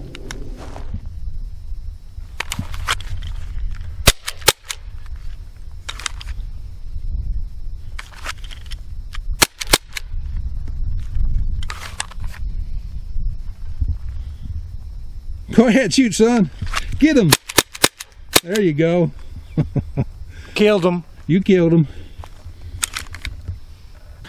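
Pistol shots crack sharply outdoors, one after another.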